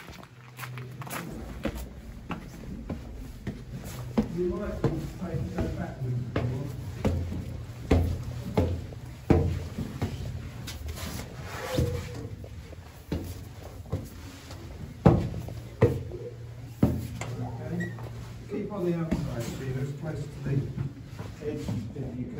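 Footsteps climb stone steps at a steady pace.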